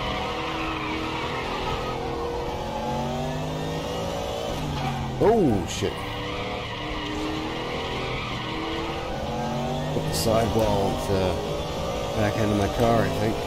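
A racing car engine roars steadily, rising and falling in pitch as it shifts through gears.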